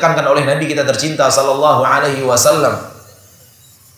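A man speaks calmly into a microphone in a softly echoing room.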